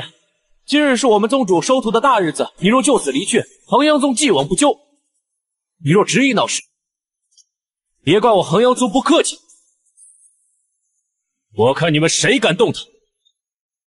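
A young man speaks firmly and sternly, close by.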